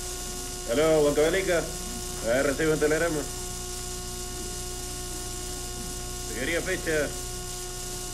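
A young man talks calmly on a phone nearby.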